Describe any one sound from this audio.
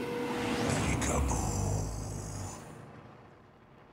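A man speaks in a deep, menacing voice.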